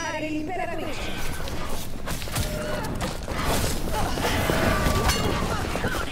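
Glass shatters and debris crashes with sharp impacts.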